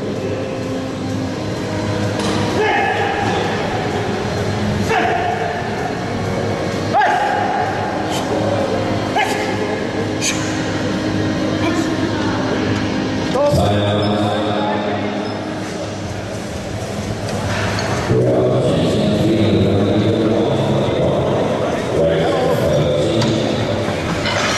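A crowd in a large echoing hall cheers and shouts.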